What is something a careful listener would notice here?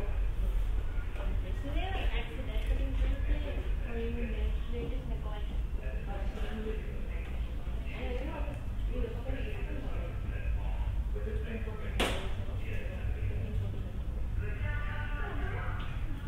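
Young visitors talk quietly nearby.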